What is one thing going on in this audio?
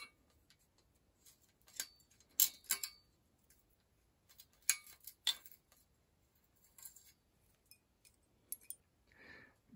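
Metal tools clink against a bicycle frame.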